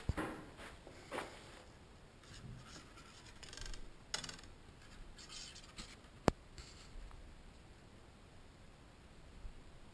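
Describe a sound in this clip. Arrow shafts clatter and rattle against each other in a hand.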